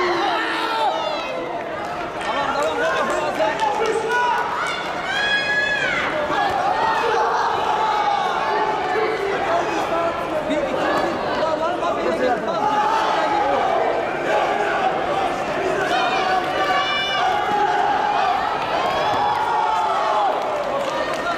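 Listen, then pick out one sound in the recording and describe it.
A crowd of spectators shouts and cheers in a large echoing arena.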